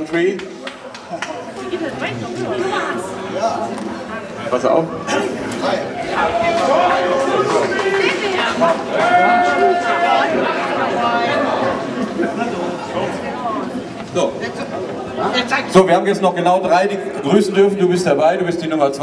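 A middle-aged man speaks with animation through a microphone over loudspeakers.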